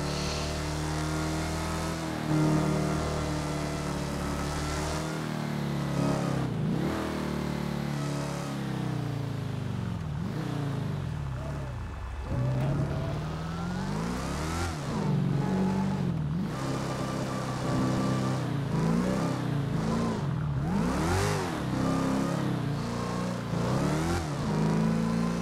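A car engine hums steadily, then revs up and down as the car slows and speeds up again.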